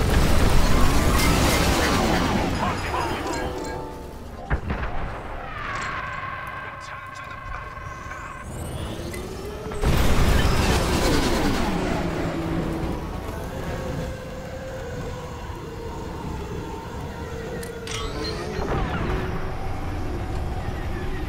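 A spaceship engine roars steadily.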